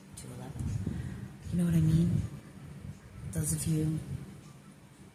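An older woman speaks calmly and close to the microphone.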